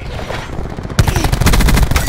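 A rifle fires in a rapid burst.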